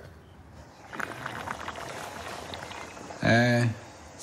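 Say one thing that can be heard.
A coffee press plunger is pushed down.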